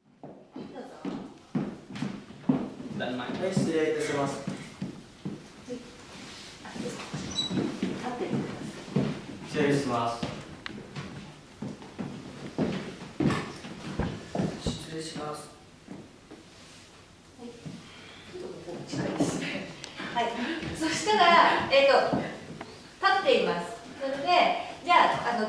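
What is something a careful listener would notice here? A woman speaks calmly and clearly, giving instructions close by.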